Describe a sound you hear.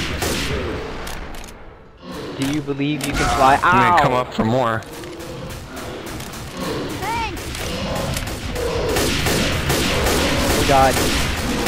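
A gun fires in rapid bursts.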